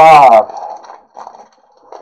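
A plastic card pack crinkles as it is handled.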